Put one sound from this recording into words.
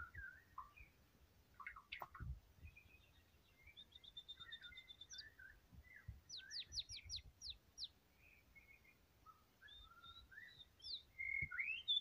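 A songbird sings a varied song of whistles, trills and rapid chirps close by.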